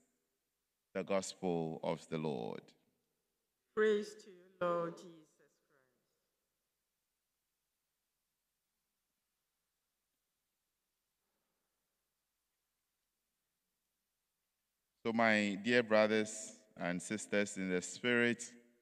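A man reads out calmly into a microphone, heard through a loudspeaker in a large echoing room.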